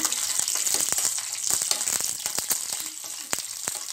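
A spoon scrapes against the metal pan.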